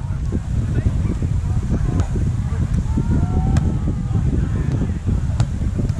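A volleyball is struck with a dull slap.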